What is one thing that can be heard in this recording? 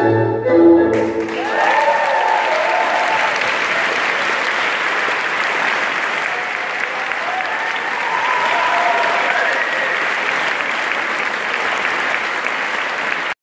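A large crowd applauds loudly in a large hall.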